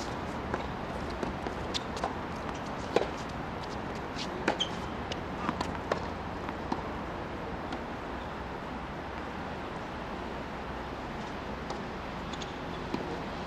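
Footsteps of a tennis player scuff and squeak on a hard court.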